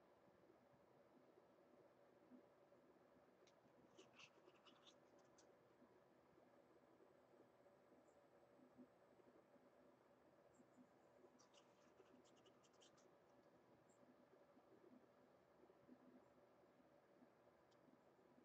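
A tool scrapes softly across a textured surface.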